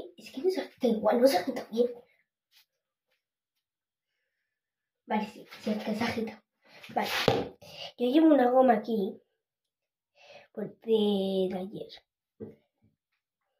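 A young girl talks close by, with animation.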